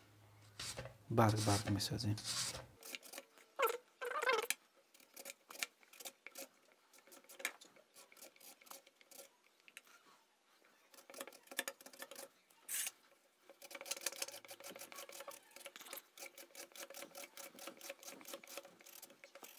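A vegetable is sliced on a mandoline with quick, rhythmic scraping strokes.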